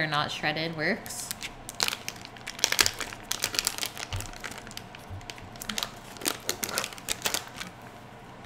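Plastic wrapping crinkles and rustles as hands peel it open.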